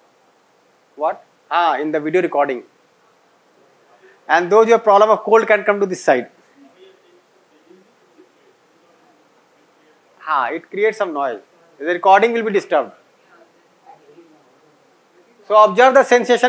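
A man speaks calmly in short phrases with long pauses.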